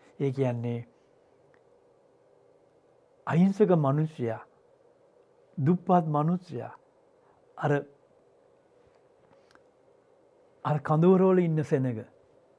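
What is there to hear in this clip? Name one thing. An elderly man speaks slowly and with emphasis into a microphone, pausing between phrases.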